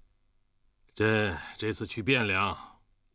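An older man speaks firmly.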